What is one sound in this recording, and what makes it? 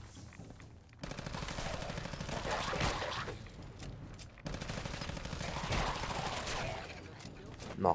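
A gun fires in rapid automatic bursts.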